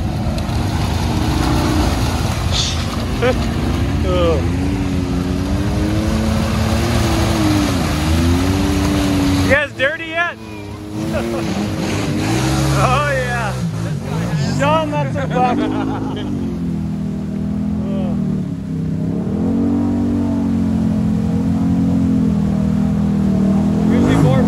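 Off-road vehicle engines rumble and rev up and down.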